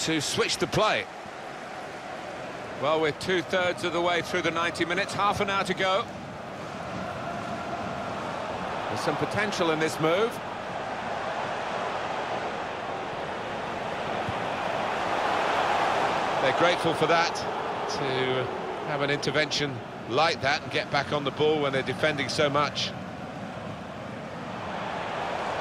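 A large crowd cheers steadily in a stadium, swelling for a while and then settling.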